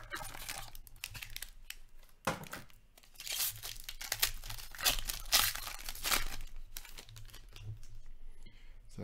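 Foil packaging crinkles and tears as hands open a pack.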